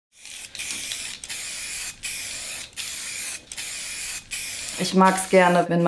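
A spray can hisses in short bursts.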